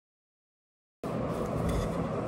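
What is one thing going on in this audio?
A rolling pin rolls over dough.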